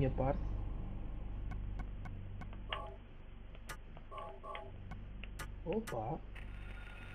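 Short electronic beeps sound as menu items are selected.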